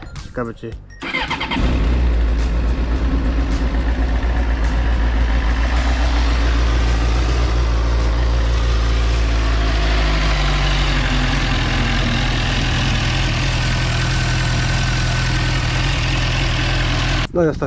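A motorcycle engine starts and idles with a steady, throaty rumble.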